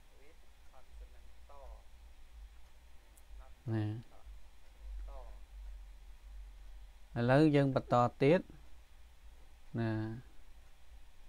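A man reads out words slowly and clearly through a microphone, with pauses between them.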